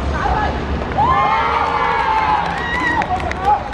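Children cheer loudly.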